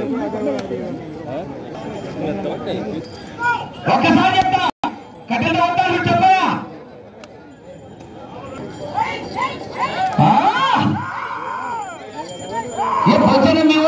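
A crowd of men shout and cheer loudly outdoors.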